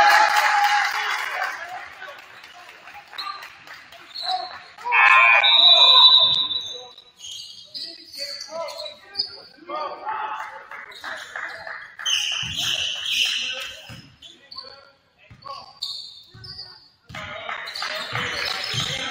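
Players shout to each other in a large echoing gym.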